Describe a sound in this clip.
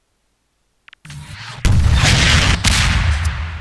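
A rocket launcher fires with a loud rushing whoosh.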